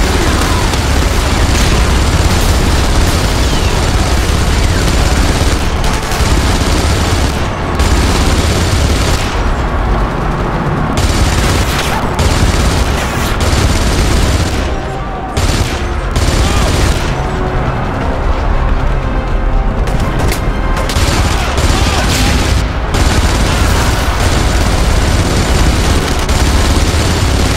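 A machine gun fires in rapid bursts close by.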